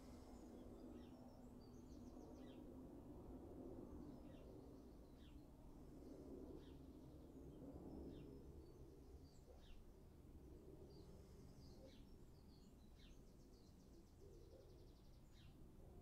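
A man speaks calmly and softly, close by.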